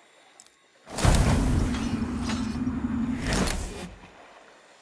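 A heavy blade swings and strikes with a whoosh.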